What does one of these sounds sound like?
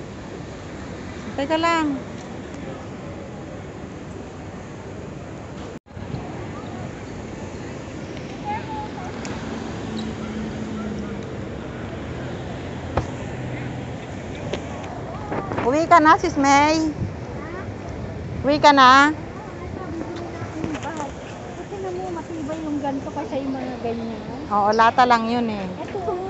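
A crowd murmurs in a busy outdoor street.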